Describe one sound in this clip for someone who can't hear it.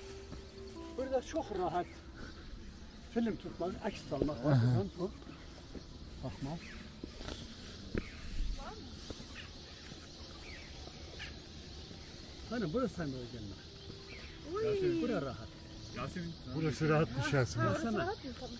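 An elderly man speaks calmly and explains, close by, outdoors.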